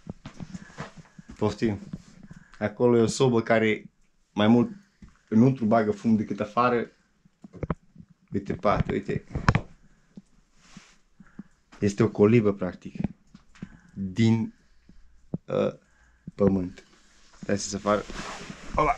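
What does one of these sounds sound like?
A man talks calmly close by.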